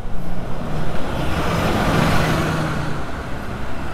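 A bus passes close by with a loud whoosh.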